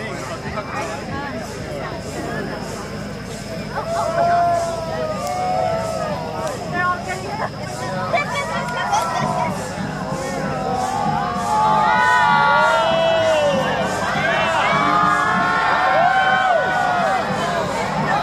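A crowd of men and women chatters and cheers nearby outdoors.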